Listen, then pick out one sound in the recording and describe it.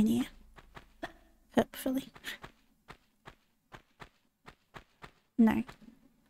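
Quick footsteps tap on a stone floor.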